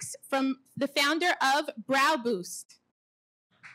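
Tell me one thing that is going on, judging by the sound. A woman speaks clearly into a microphone.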